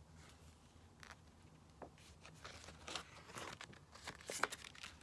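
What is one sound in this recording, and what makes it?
Paper pages rustle and flap as they are leafed through close by.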